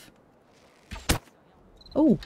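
A bow string twangs sharply as an arrow is loosed.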